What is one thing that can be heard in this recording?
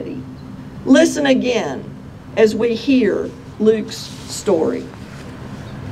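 A woman speaks calmly into a microphone outdoors.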